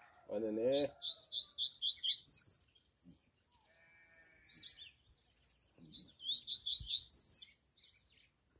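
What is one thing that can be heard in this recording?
Caged birds sing in quick bursts of rising chirps, close by.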